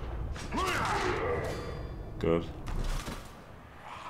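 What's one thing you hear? Armoured players crash together with a heavy thud.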